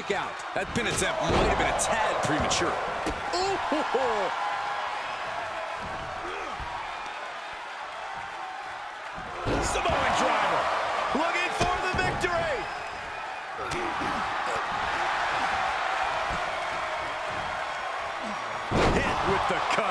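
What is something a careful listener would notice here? Heavy bodies slam and thud onto a wrestling mat.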